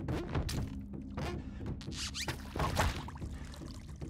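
Water splashes as a game character dives in.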